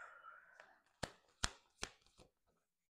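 Playing cards flick and snap as they are shuffled.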